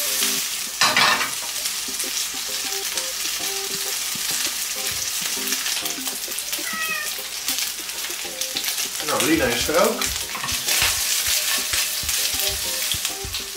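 Food sizzles and crackles in a hot frying pan.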